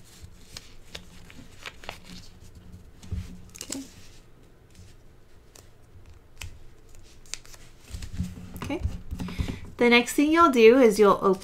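Fingers tap and click on a small plastic piece, close up.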